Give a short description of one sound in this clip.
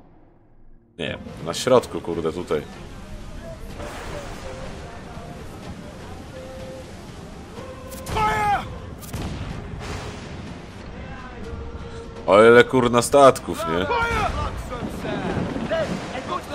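Storm wind howls and waves crash against a ship.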